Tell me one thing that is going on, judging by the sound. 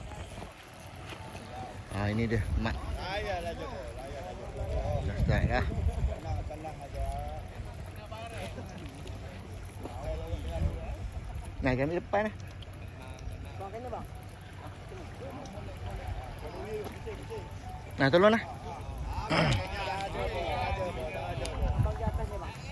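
Men talk with animation nearby, outdoors.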